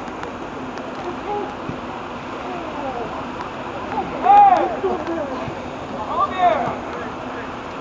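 Young men shout loudly to each other outdoors.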